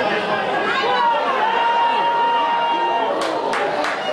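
A referee blows a long whistle blast.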